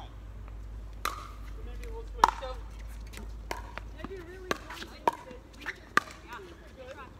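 Paddles strike a plastic ball with sharp hollow pops, back and forth.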